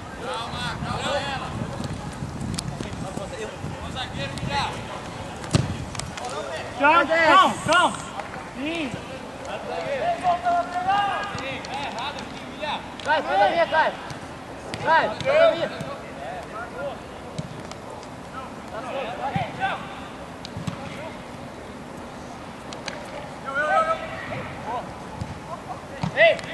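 Young men shout and call out to each other across an open outdoor pitch.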